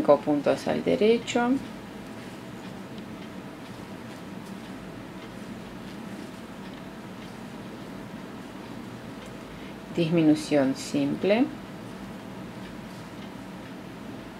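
Wooden knitting needles click and scrape softly against yarn.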